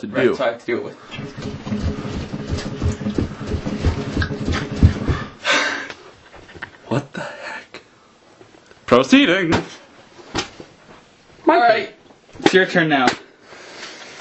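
A young man talks and grunts close by.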